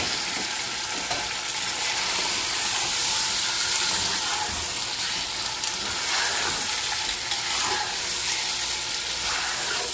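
Meat sizzles steadily in a hot pot.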